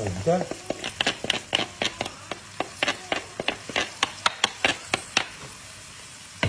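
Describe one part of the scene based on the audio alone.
Food sizzles and crackles in a hot pan.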